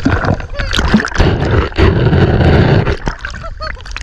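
Water splashes and gurgles close by underwater.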